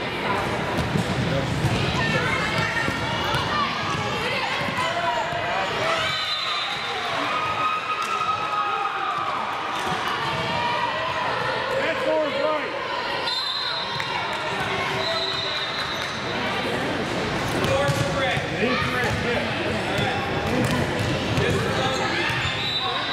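Young girls call out and chatter throughout a large echoing gym.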